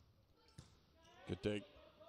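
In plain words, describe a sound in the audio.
A volleyball is struck hard by hand in a large echoing hall.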